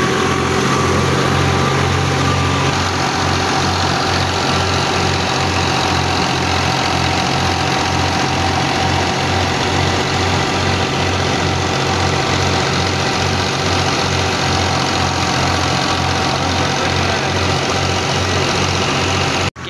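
A tractor engine chugs loudly and steadily close by.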